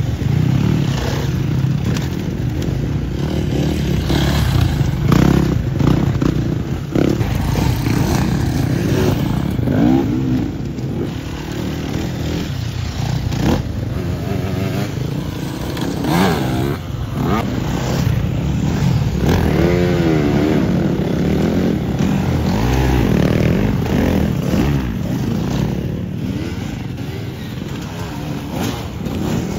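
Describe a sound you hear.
Dirt bike engines rev and whine loudly close by, rising and falling in pitch.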